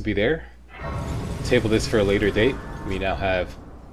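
A bright magical chime rings out and fades.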